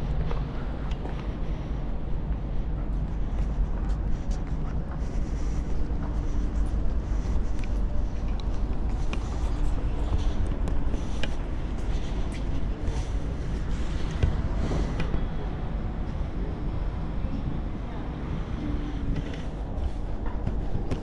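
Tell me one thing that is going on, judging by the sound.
Strong wind blows steadily outdoors, buffeting the microphone.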